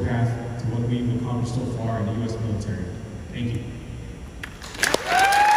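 A man speaks calmly through a loudspeaker in a large echoing hall.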